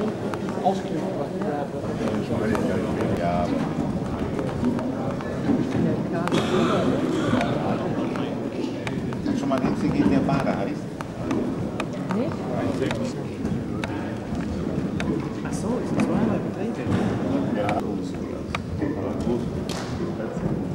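A horse's hooves thud on soft sand as it canters loose.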